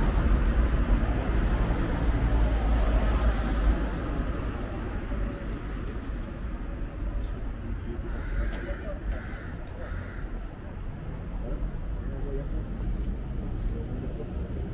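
Traffic rumbles along a nearby street.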